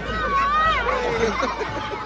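A woman nearby laughs and cheers.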